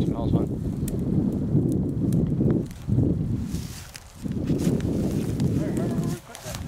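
A dog rustles through dry grass.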